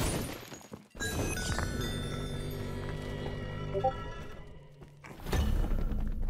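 A short triumphant jingle plays.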